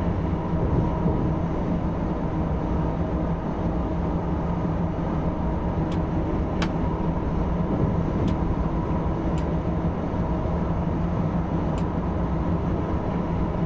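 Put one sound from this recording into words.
A train rumbles steadily through a tunnel.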